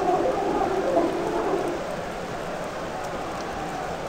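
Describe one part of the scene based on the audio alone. A stadium crowd roars in a swell that rises and falls.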